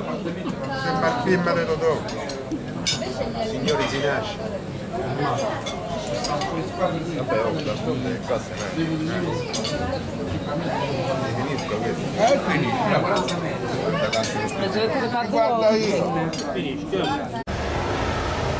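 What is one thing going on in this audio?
A crowd chatters in a busy room.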